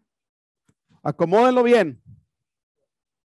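A man's voice calls out briefly nearby.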